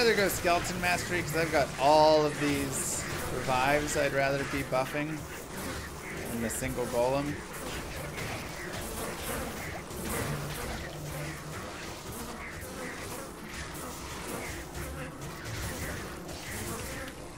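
Game spells crackle and blast during a fight.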